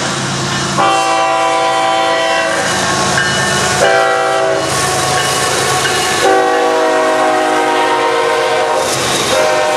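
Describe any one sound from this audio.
Diesel locomotives rumble past close by.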